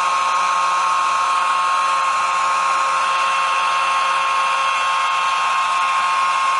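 A small two-stroke engine on a brush cutter whines steadily close by.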